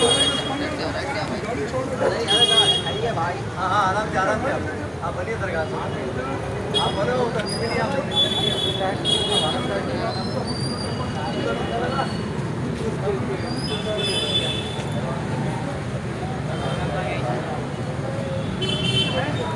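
A crowd of people chatters and shouts loudly outdoors.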